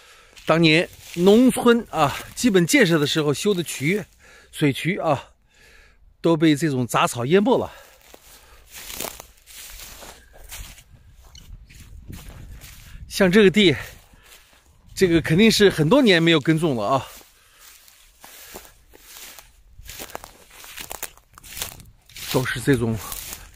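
Dry grass crunches and rustles underfoot.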